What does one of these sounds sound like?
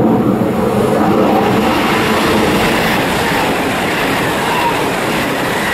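A high-speed train approaches and rushes past with a rising roar.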